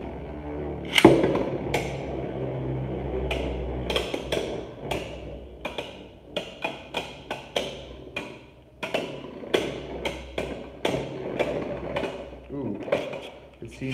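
Spinning tops clack sharply against each other in a plastic arena.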